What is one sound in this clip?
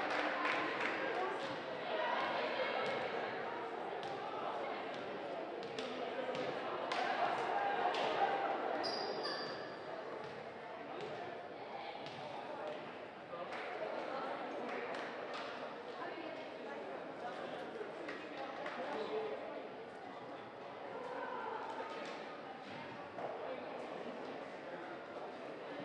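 A crowd chatters and murmurs, echoing through a large gym.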